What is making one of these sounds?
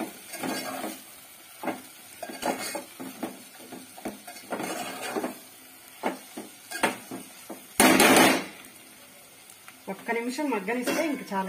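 A metal spoon scrapes and clinks against a steel pot while stirring thick food.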